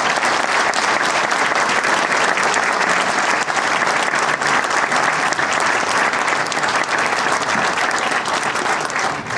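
An audience applauds loudly in a hall.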